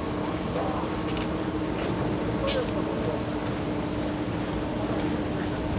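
A six-seat gondola cabin rattles and hums as it rolls along the cable through the station rollers.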